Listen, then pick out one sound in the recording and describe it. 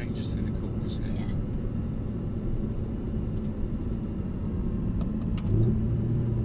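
A car engine hums steadily inside the cabin and grows louder near the end.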